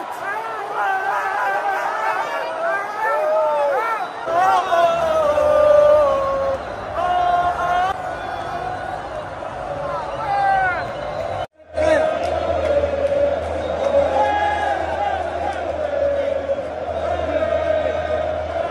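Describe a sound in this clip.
A crowd chants loudly in a large echoing stadium.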